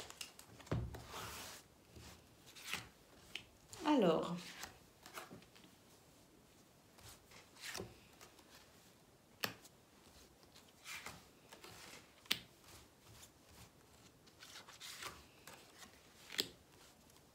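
Cards are shuffled and laid down on a table with soft slaps.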